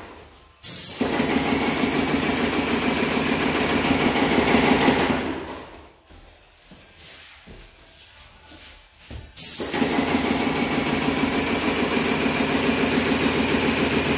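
A paint sprayer hisses loudly in long bursts.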